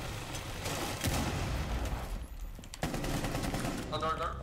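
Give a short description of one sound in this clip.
Gunfire bursts out in quick shots.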